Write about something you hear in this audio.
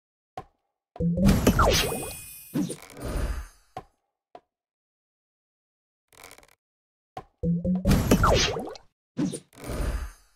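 Game sound effects crash and whoosh in short bursts.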